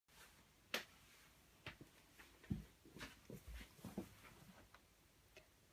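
Fabric rustles and knocks nearby.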